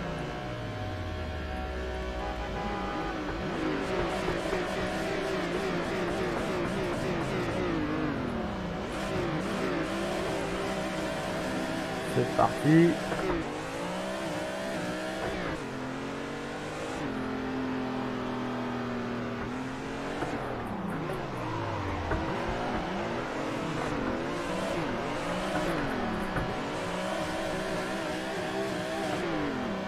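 A racing car engine revs hard, rising and falling in pitch through the gears.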